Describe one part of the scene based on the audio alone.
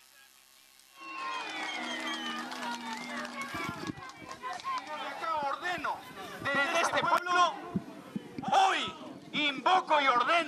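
A man shouts with passion into a microphone, heard loud through a loudspeaker.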